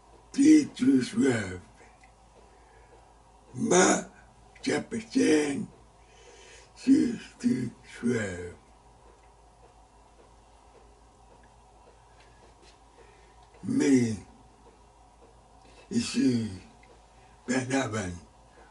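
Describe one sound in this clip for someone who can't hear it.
An elderly man speaks slowly and deliberately into a close microphone, with long pauses.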